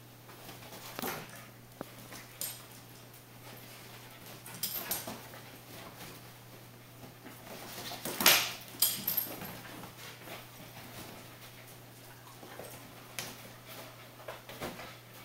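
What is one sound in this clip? A small dog barks and yaps in short bursts.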